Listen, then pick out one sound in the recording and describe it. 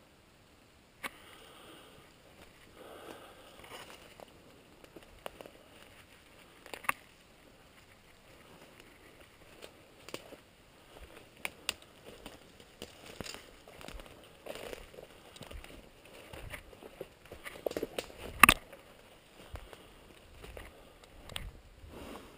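Footsteps crunch through dry leaves and snap twigs.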